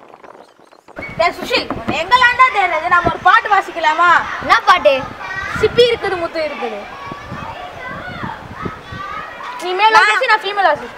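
A young boy talks loudly and with animation nearby.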